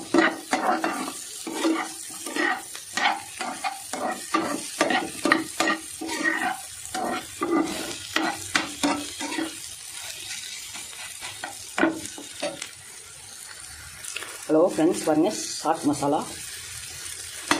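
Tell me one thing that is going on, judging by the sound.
A metal spatula scrapes and clatters against a frying pan.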